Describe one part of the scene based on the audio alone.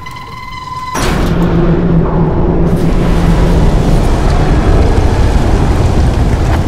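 Water suddenly rushes and roars loudly through a sewer channel.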